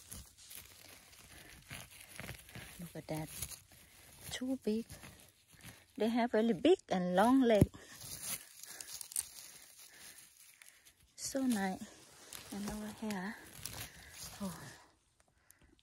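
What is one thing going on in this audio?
Dry pine needles and twigs rustle and crackle as hands dig through them.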